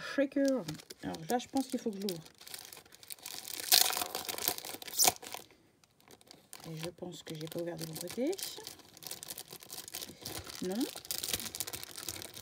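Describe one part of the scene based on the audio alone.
Plastic wrapping crinkles and rustles up close.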